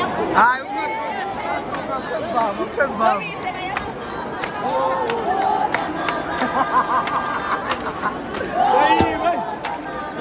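A crowd of men and women sings and chants loudly in an echoing hall.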